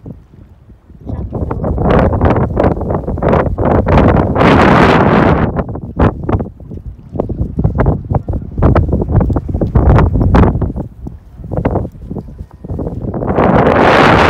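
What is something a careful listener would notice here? Wind gusts loudly outdoors, buffeting the microphone.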